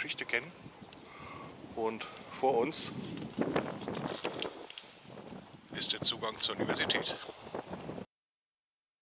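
A middle-aged man talks close up, outdoors.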